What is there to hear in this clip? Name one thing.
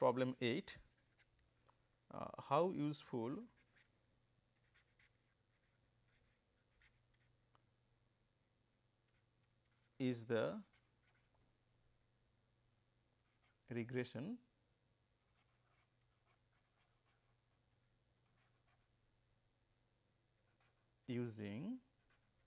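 A felt-tip marker squeaks and scratches softly across paper.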